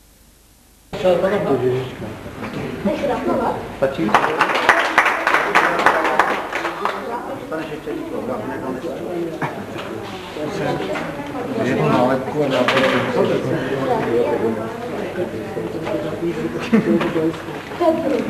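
A crowd of men, women and children chatters nearby in an echoing room.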